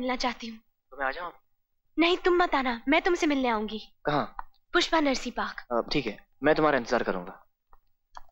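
A young woman speaks anxiously into a phone, close by.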